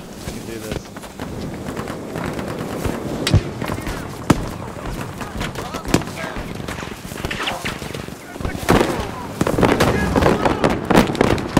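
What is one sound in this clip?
Gunshots crack sharply in the distance.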